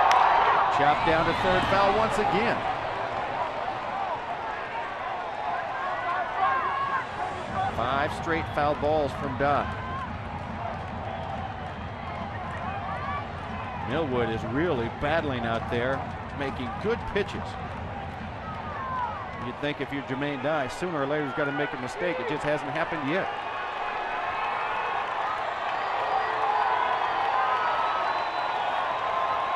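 A large crowd cheers and murmurs in an open stadium.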